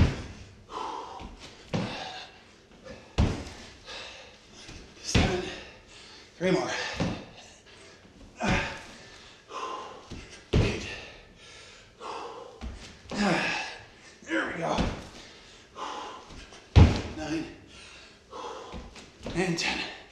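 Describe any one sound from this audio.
A man breathes hard and puffs with effort, close by.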